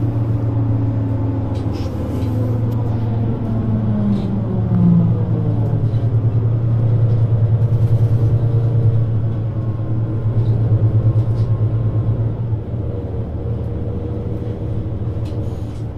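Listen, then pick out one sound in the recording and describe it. A vehicle's engine hums and drones steadily from inside as it drives along.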